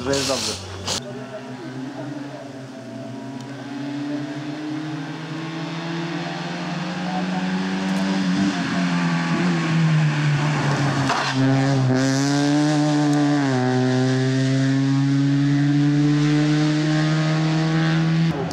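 A rally car's engine revs hard as the car races closer and passes by.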